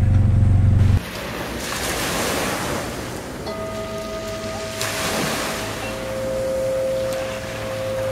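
Sea waves wash and break on a shore.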